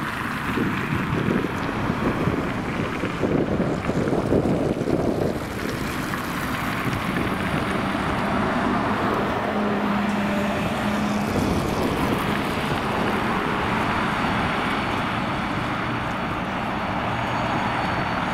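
An electric bus hums as it approaches and passes close by.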